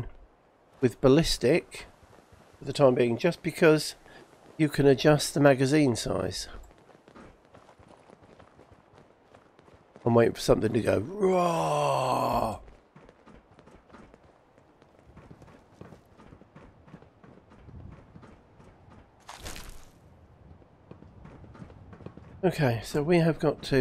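Footsteps tread on hard ground at a steady walking pace.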